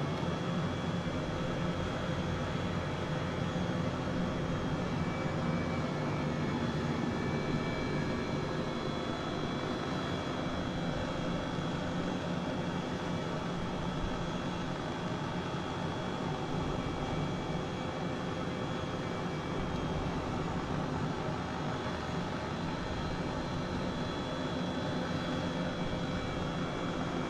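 A helicopter's engine and rotor drone steadily from inside the cabin.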